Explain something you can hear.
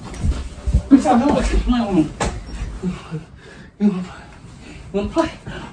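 Bedding rustles as a young man crawls across a bed.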